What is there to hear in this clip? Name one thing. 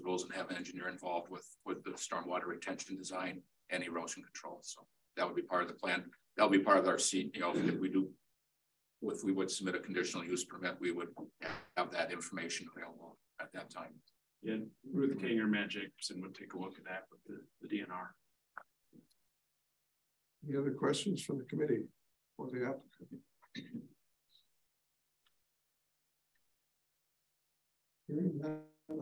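A man speaks calmly, heard through a room microphone.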